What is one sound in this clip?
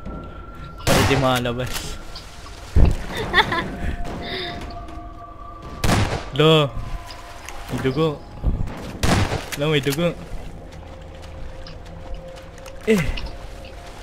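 A shotgun fires loud, sharp blasts with a short echo.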